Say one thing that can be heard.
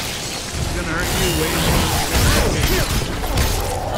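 A chainsaw roars as it tears into something.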